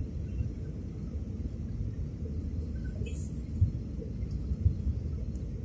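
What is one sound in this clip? A jet engine roars steadily with a low rumble inside an airliner cabin.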